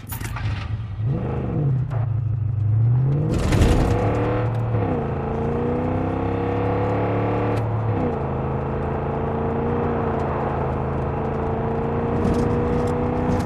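A truck engine starts, then revs and hums steadily while driving.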